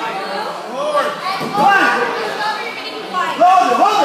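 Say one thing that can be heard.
A child lands with a thud on a mat.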